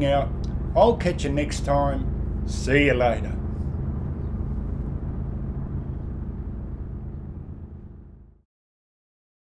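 A race car engine idles with a deep, steady rumble, then fades out.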